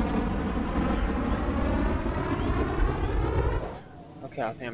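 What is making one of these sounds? A jet engine roars loudly and steadily, then cuts off abruptly.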